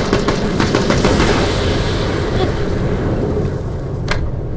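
A loud explosion roars and crackles.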